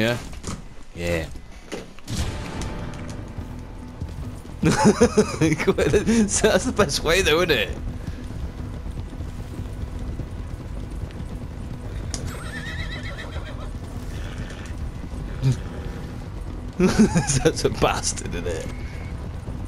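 Horses gallop with heavy hoofbeats on soft ground.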